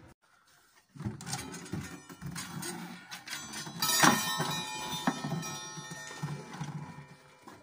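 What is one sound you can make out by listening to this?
A wooden clock case knocks and creaks as it is handled up close.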